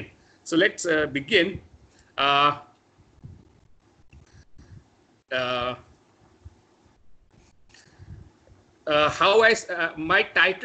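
A young man speaks over an online call, in short bursts.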